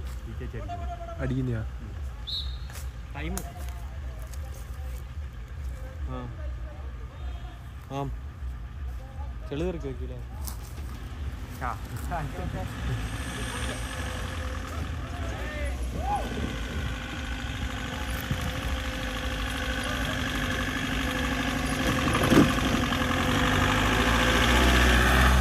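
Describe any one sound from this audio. A jeep engine rumbles and revs, growing louder.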